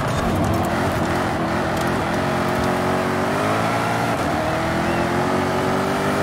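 A sports car engine roars steadily, rising in pitch as it speeds up.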